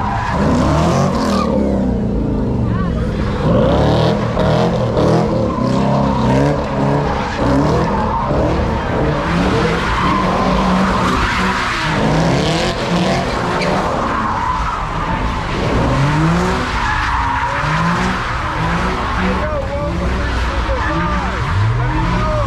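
Tyres screech loudly on pavement.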